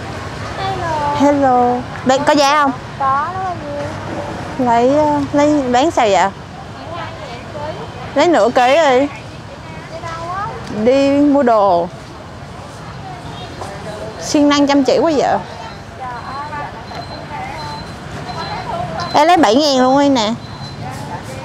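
A woman calls out loudly nearby in short bursts.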